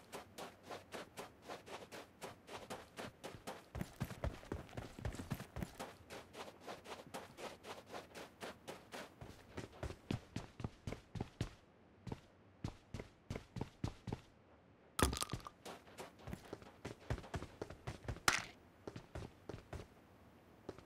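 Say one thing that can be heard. Footsteps thud quickly and steadily on the ground.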